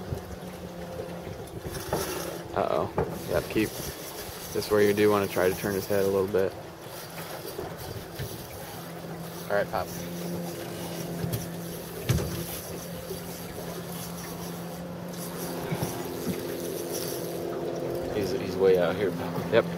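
Small waves lap gently against a boat.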